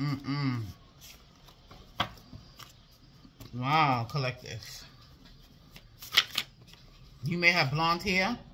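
Paper cards rustle and flick as they are shuffled by hand.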